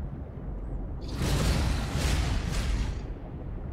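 Bubbles burst out in a loud, rushing hiss.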